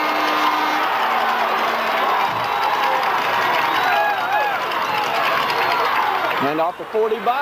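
Football players shout across the field.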